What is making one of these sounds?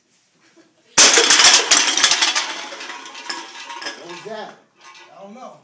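A group of men laugh and shout loudly.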